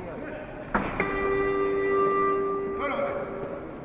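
A loud buzzer sounds steadily.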